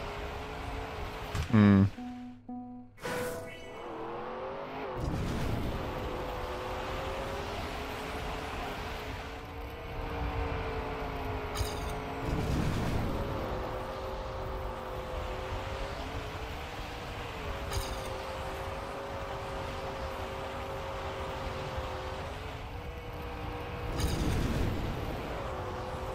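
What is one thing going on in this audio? Tyres hiss and skid on the track.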